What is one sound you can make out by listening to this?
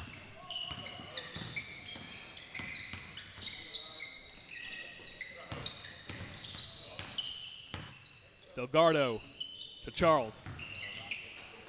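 A basketball bounces with quick thuds.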